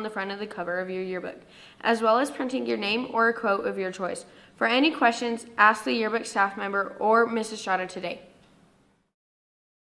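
A young woman reads out calmly into a close microphone.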